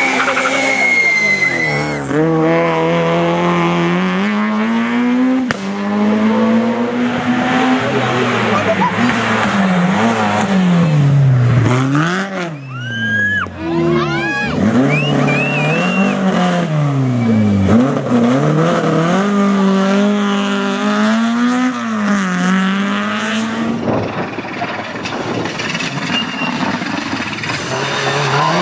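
Rally car engines roar close by, revving up and dropping again and again as the cars race through a bend.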